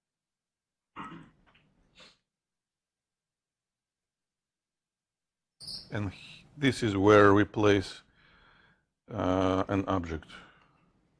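A man speaks calmly nearby, in short bursts with pauses.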